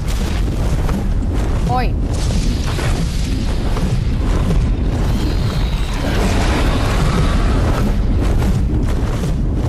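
A crossbow fires with a sharp twang.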